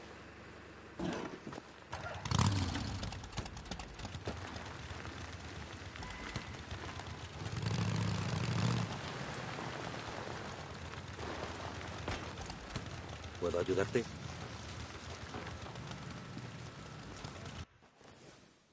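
A motorcycle engine starts, revs and roars as the bike rides off.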